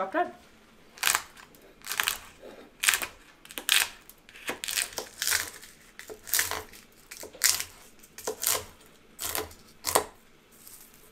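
A knife chops on a wooden board in sharp knocks.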